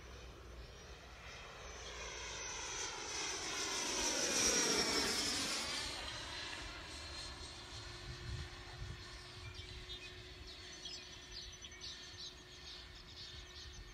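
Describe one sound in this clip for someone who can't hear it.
A model jet's electric ducted fan whines as it passes overhead, its pitch dropping as it goes.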